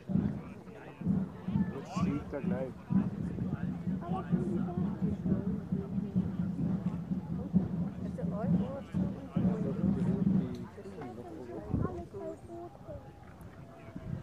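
A group of men and women talk and call out together a short distance away, outdoors.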